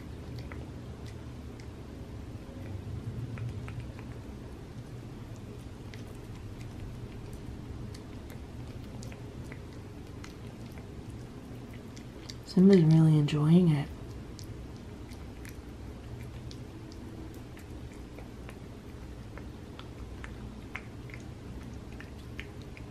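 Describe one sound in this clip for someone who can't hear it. A cat laps and licks food from a small plate with soft wet clicks.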